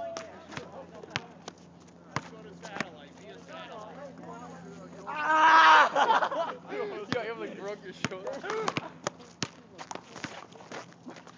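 A basketball bounces sharply on an outdoor court.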